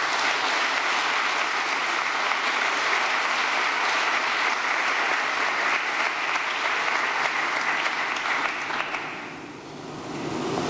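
A large audience applauds loudly in a big hall, then the applause fades away.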